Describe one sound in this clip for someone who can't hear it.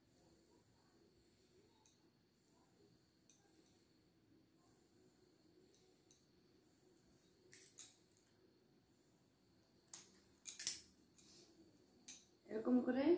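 Small objects click and rustle as they are handled close by.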